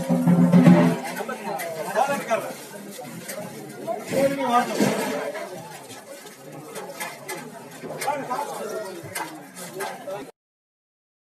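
A middle-aged man shouts angrily nearby.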